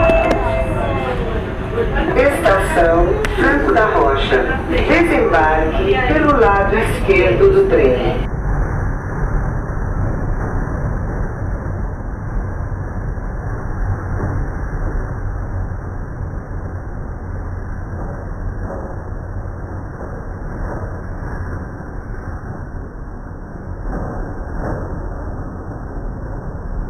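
An electric commuter train rumbles along the track.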